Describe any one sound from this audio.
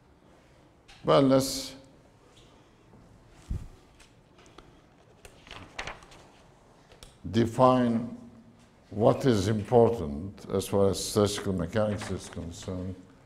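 An older man speaks calmly through a clip-on microphone.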